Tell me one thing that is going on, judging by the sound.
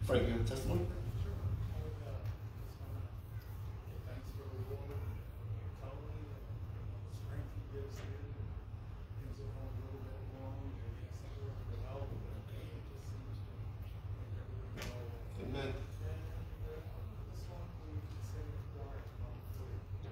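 A middle-aged man speaks steadily through a microphone in an echoing hall.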